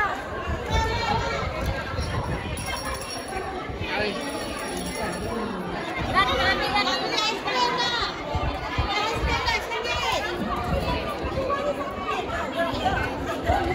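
A woman nearby talks with animation.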